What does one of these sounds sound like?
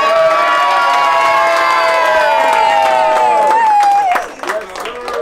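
A crowd of adults and children cheers and sings loudly.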